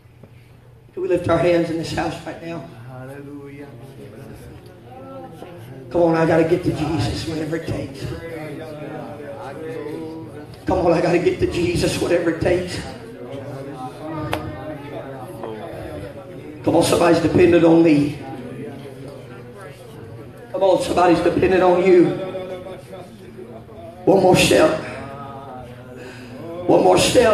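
A man preaches loudly and with passion through a microphone and loudspeakers, in bursts with pauses.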